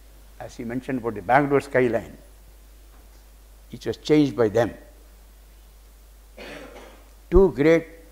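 An elderly man speaks calmly into a microphone in bursts, with pauses between phrases.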